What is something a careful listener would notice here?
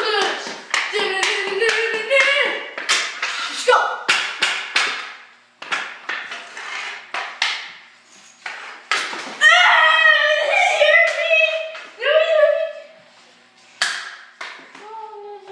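A hockey stick clacks against a hard floor.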